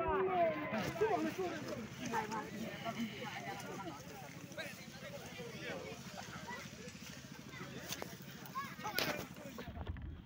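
Men talk nearby in casual voices.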